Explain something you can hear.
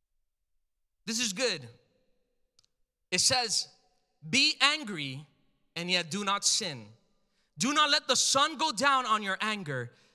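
A man speaks calmly and closely into a microphone, with pauses between phrases.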